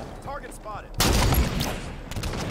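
A sniper rifle fires a single loud shot.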